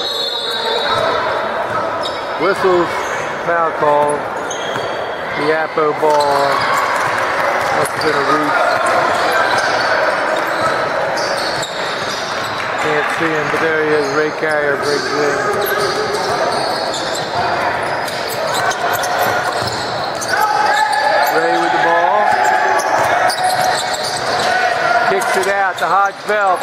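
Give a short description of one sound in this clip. Young men call out to each other across an echoing gym.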